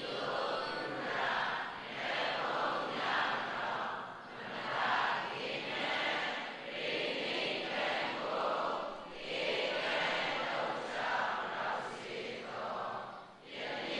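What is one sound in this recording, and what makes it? An elderly man speaks calmly through a microphone and loudspeakers in a large echoing hall.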